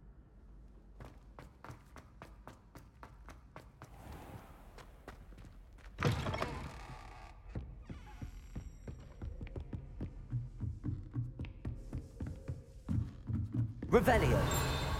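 Footsteps patter quickly across a hard stone floor.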